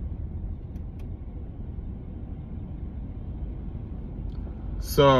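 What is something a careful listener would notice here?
A car engine rumbles low and steadily inside the cabin.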